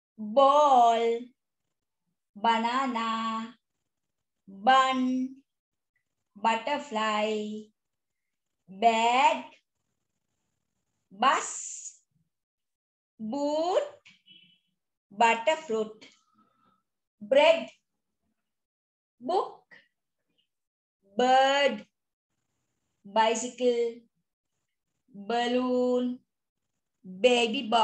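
A woman speaks close by in short, clear words, pausing between each one.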